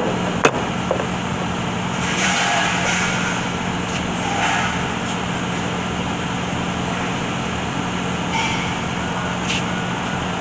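Metal parts clink.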